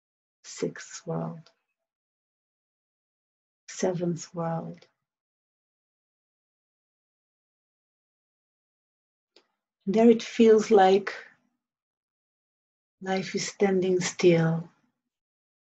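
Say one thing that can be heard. A woman speaks calmly and slowly, close by, in short phrases with long pauses.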